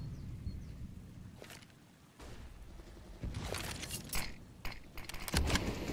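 A weapon is drawn with a sharp metallic click.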